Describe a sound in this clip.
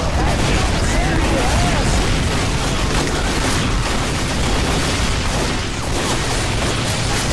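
Game weapons fire and explosions crackle loudly and constantly.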